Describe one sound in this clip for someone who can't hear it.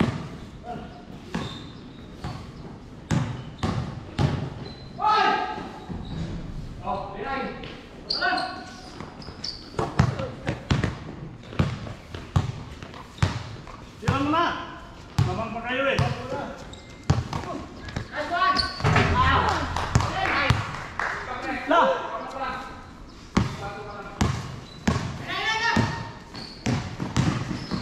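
A basketball bounces on a hard court with sharp thuds.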